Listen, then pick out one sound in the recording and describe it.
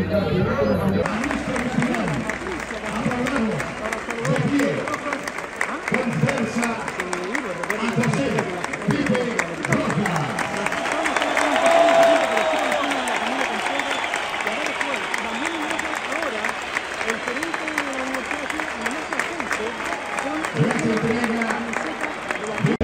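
A large stadium crowd sings and chants loudly.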